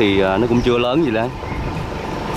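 A man calls out loudly nearby.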